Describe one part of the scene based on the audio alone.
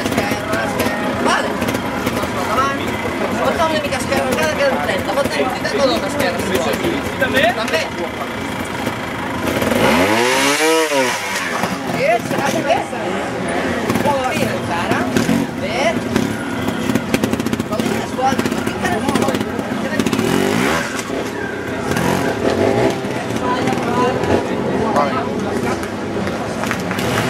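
A trials motorcycle engine revs in short bursts as the bike climbs over rocks.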